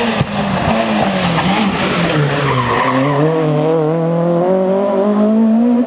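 A third rally car engine screams as it accelerates away.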